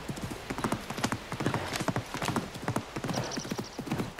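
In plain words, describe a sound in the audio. Horse hooves thud on wooden planks.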